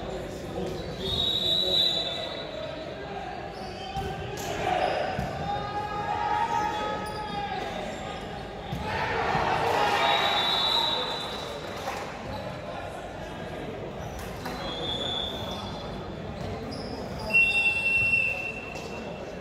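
A referee blows short whistle blasts.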